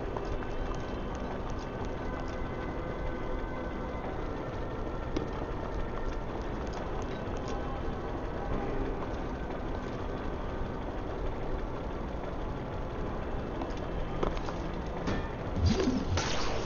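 Footsteps patter on a stone floor.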